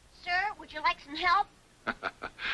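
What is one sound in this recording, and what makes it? A child speaks in a high voice.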